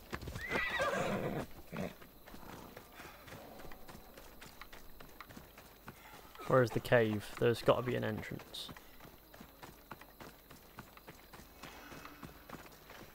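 Footsteps run quickly over dry dirt.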